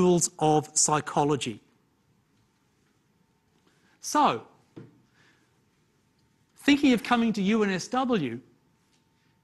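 A man lectures calmly into a microphone, in short phrases with pauses.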